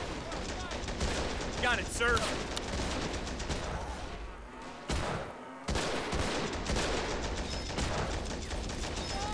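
Rifles and machine guns fire in rapid bursts.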